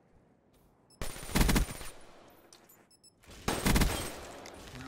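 Gunfire from a video game rifle rattles in bursts.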